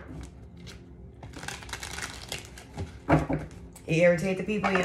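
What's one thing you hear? Playing cards shuffle and slap together.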